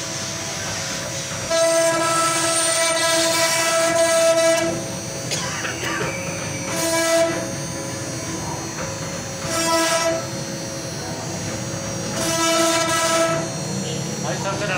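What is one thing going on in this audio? A machine spindle whirs steadily with a high whine.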